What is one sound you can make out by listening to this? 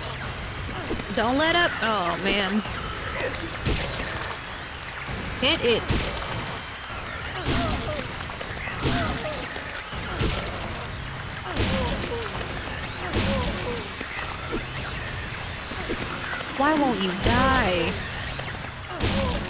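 A young woman talks with animation into a close microphone.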